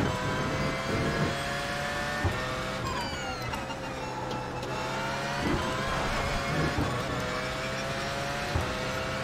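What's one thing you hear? A racing engine roars, rising in pitch through each gear and dropping sharply at every gear change.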